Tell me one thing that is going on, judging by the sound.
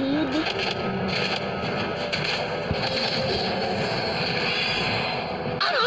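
Video game fight effects clash and whoosh.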